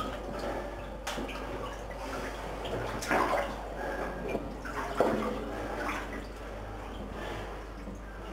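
Water sloshes and splashes as a person wades through it.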